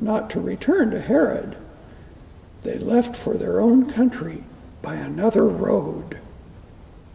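An elderly man reads aloud calmly through a microphone in a large echoing room.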